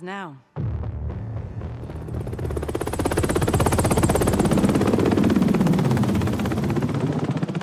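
A helicopter's rotor thumps loudly overhead, growing closer.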